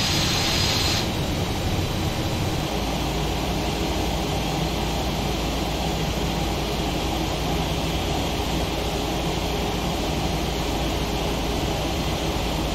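Jet engines rumble low and muffled.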